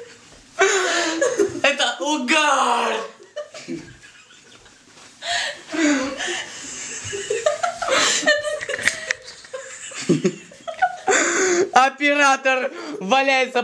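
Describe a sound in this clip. Young women laugh and shriek loudly close by.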